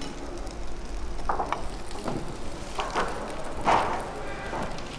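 A metal spatula scrapes against a frying pan.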